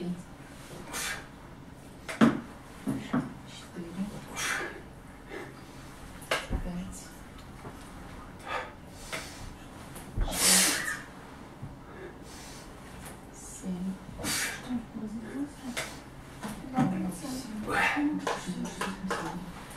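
A man breathes out hard with each sit-up.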